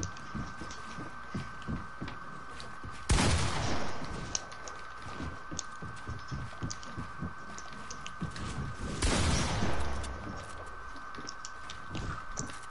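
Building pieces in a video game snap into place with quick wooden clacks.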